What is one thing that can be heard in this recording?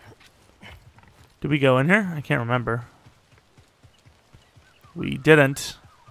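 Footsteps run quickly over earth and grass.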